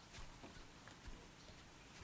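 Footsteps crunch on dry ground.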